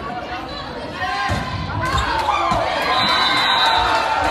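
A volleyball is hit with a sharp smack.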